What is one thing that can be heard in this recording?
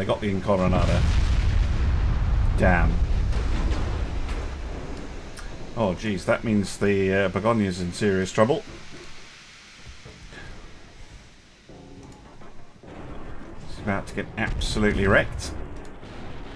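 Heavy guns boom with deep rumbles.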